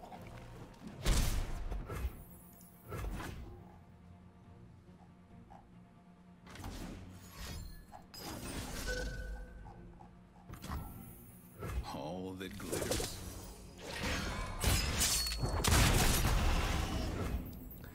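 Magical game sound effects whoosh and blast.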